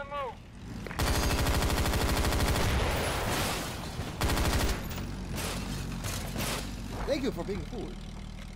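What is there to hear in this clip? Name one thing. Rifle shots crack rapidly nearby.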